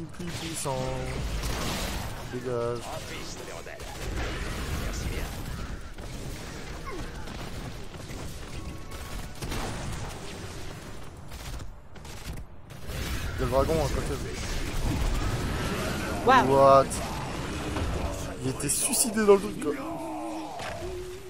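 Game spell impacts thud and boom.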